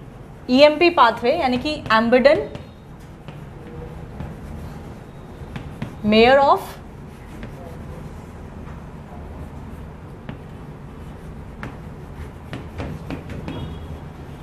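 A marker squeaks and taps on a board.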